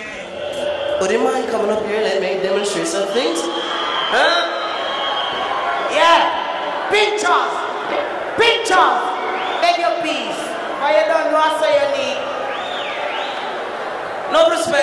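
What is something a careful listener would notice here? A man sings through a loudspeaker on stage.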